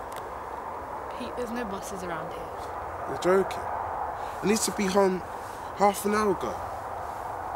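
A young man talks with a young woman outdoors.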